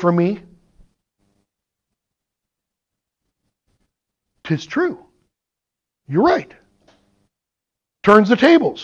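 A man speaks in short phrases with pauses, heard through a microphone.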